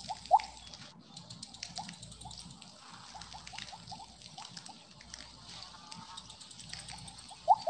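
Short electronic game chirps sound again and again.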